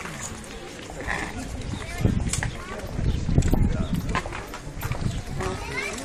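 Horse hooves clop on pavement.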